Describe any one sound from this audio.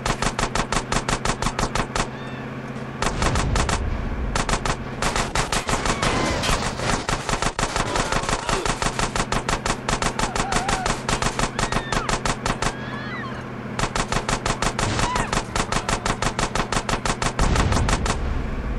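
Car engines roar as cars race along a street.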